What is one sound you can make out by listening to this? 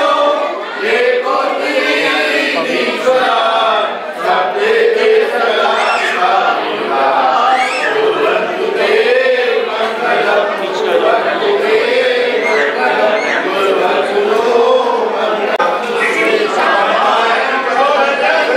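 A group of men and women chant a hymn together in a steady melodic rhythm.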